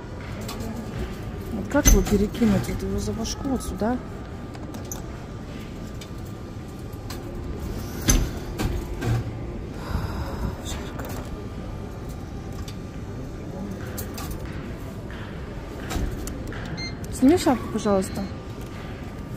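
Arcade machines hum and chime steadily in the background.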